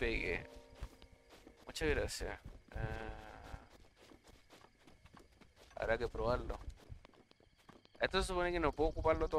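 A man talks with animation into a microphone, in short bursts.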